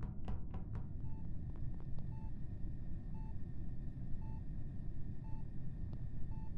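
A game alarm beeps steadily and repeatedly.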